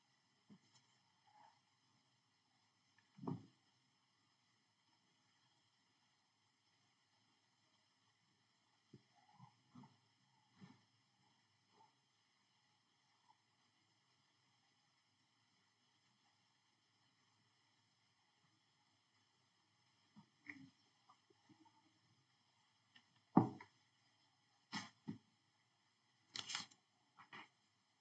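A young woman speaks now and then over an online call, faint and muffled.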